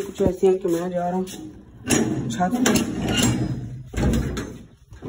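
A loose metal bracket rattles and scrapes against a wall.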